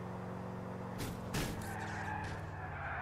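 A car crashes into another car with a sharp bang.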